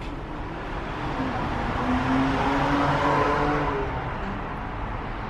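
A tram's electric motor whines loudly, rising then falling away.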